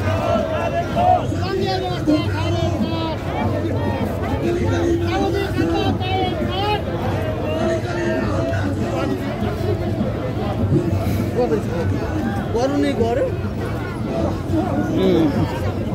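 A crowd of men and women chatters and murmurs outdoors.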